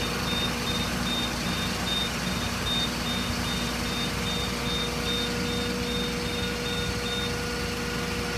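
A warning beeper pips rapidly and evenly, then stops.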